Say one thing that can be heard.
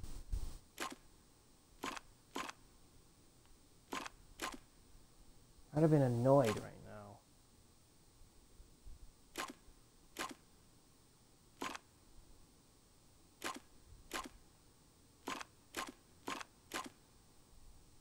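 Short electronic clicks sound as puzzle panels turn.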